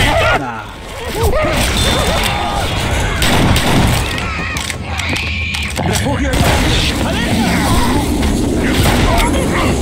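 Gunshots crack.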